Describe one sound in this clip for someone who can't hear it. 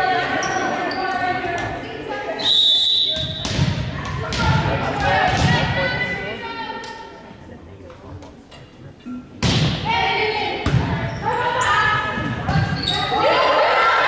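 Young women shout and call out in a large echoing gym.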